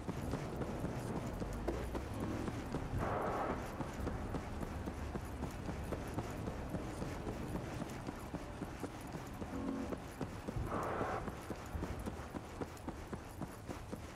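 Tyres rumble steadily on a road.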